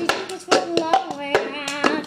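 A young girl claps her hands.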